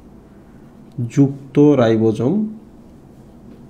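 A man speaks briefly in a calm voice.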